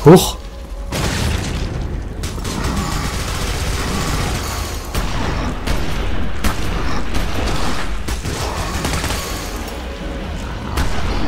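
A minigun fires in rapid bursts.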